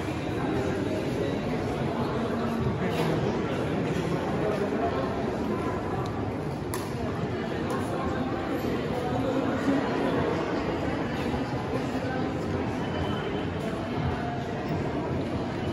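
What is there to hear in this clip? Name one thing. A crowd of visitors chatters in a large echoing hall.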